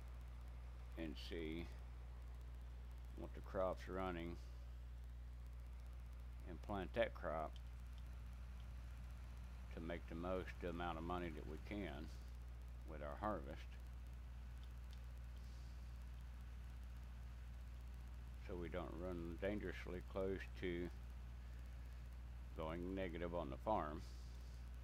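An older man talks calmly into a headset microphone, in short bursts.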